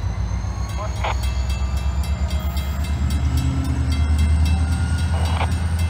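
A pickup truck drives slowly across the tracks.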